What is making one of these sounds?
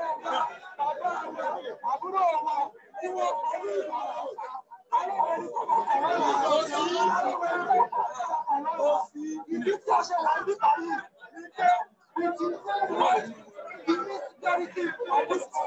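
A man shouts through a megaphone outdoors.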